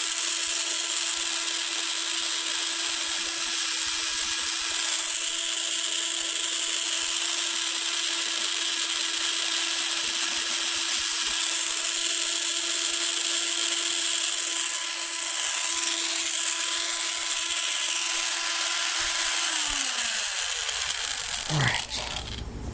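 A rotary tool whirs steadily at high speed and winds down.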